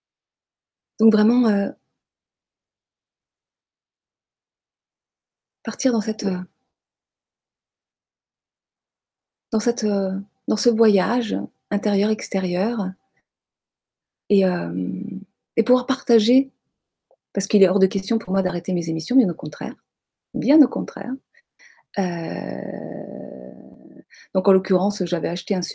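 A middle-aged woman talks calmly and with animation close to a microphone, with pauses between phrases.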